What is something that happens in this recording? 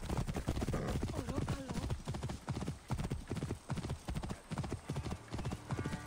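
Horse hooves clatter rapidly on a stone road at a gallop.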